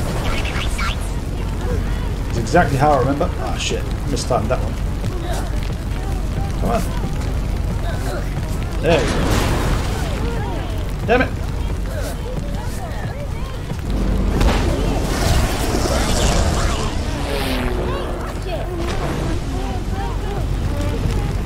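An adult man talks through a headset microphone.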